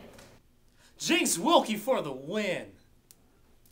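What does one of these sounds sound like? A young man speaks energetically up close.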